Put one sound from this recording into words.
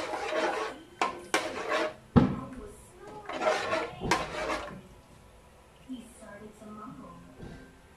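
A metal utensil scrapes and clinks against a pan.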